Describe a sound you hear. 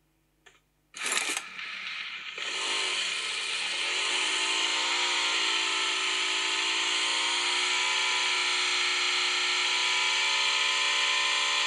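A motorbike engine roars and revs loudly from a phone game.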